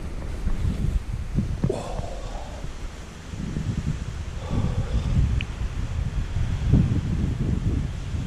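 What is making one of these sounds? Wind gusts outdoors, rumbling against the microphone.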